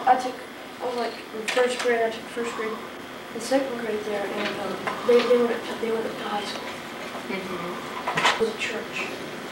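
A boy talks casually nearby.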